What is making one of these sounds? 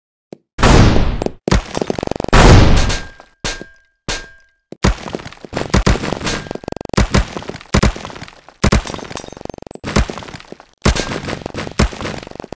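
Coins clink and jingle in a game.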